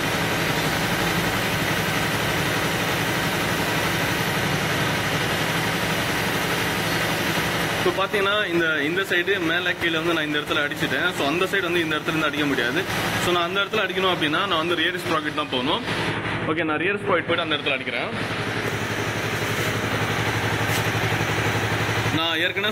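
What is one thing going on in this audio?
An aerosol spray can hisses in short bursts.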